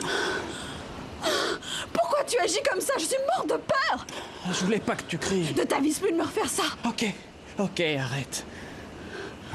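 A man speaks tensely up close.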